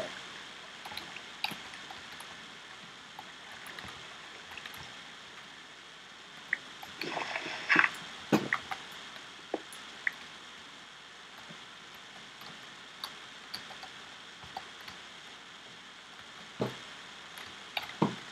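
Blocks are dug and placed with short, soft knocks, now and then.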